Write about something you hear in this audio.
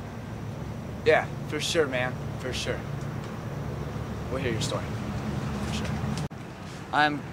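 A second young man speaks quietly close by.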